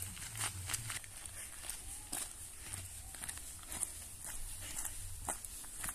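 Trekking poles click on gravel.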